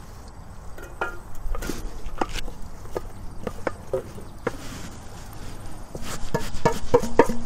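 Green chillies tumble and thud into a metal pot.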